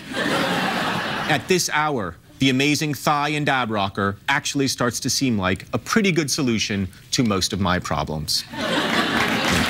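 A man reads aloud in an expressive voice, close to a microphone.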